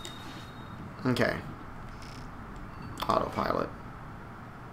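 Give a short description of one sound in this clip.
Soft electronic menu chimes sound.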